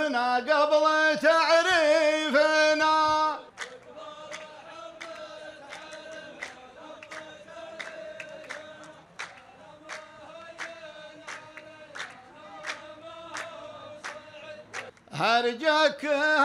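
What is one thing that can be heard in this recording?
A man chants poetry loudly through a microphone, in a long drawn-out voice.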